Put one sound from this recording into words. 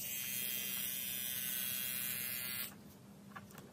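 A small electric motor whirs loudly at high speed, then stops.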